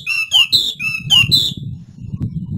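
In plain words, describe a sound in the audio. A bird sings loud, clear whistling notes up close.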